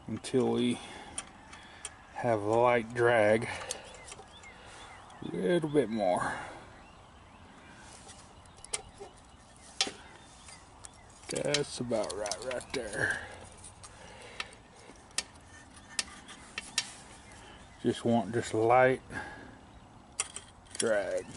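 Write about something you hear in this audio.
Small metal engine parts click and tap as they are handled.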